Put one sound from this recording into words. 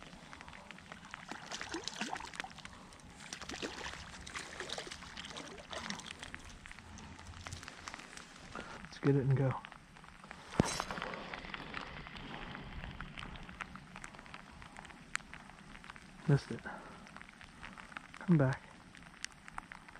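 Rain patters steadily on a lake's surface outdoors.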